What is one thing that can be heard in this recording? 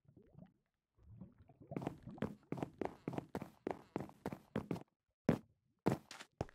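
Footsteps thud quickly and steadily on a wooden floor.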